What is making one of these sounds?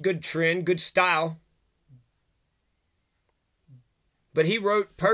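A middle-aged man speaks calmly and close to the microphone, pausing between phrases.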